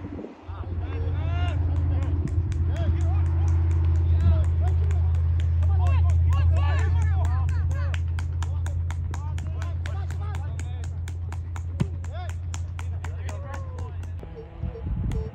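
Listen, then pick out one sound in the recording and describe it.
Young players shout across an open field.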